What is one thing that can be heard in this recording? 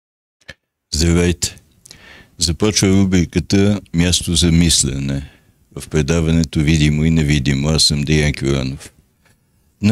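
An elderly man speaks calmly and steadily into a close microphone.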